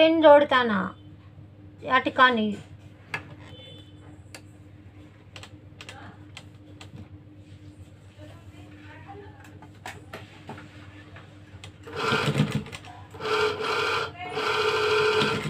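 A sewing machine runs with a soft rhythmic clatter.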